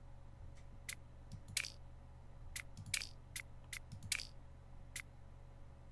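Short electronic menu clicks tick again and again as options are chosen.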